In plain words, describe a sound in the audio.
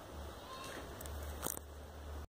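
A hand rubs and bumps against a microphone.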